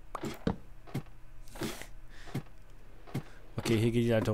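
Footsteps thud on wooden stairs at a steady pace.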